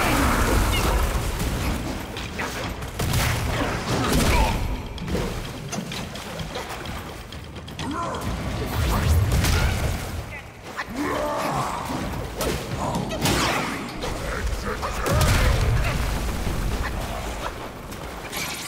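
Heavy blows and sword strikes thud and clash.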